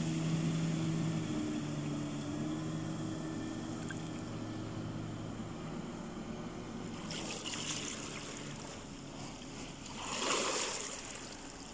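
A motorboat engine hums across the water and slowly fades into the distance.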